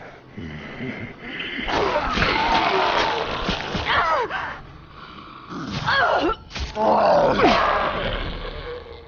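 A machete slashes and thuds into a body.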